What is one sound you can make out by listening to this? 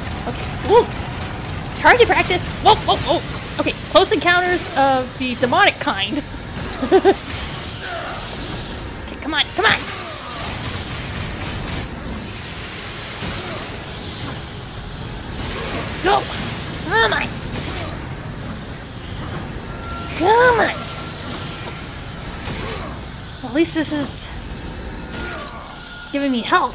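Winged creatures shriek in high, bending cries.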